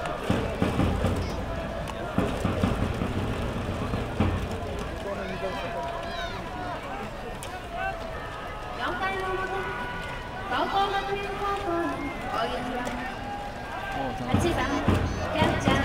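A large stadium crowd chants and cheers outdoors.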